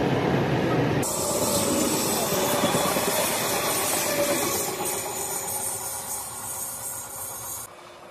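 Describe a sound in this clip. An electric passenger train rushes past with a whoosh and then fades into the distance.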